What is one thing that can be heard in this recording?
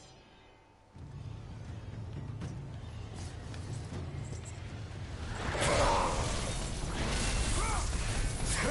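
Loud game battle sounds rumble and clash.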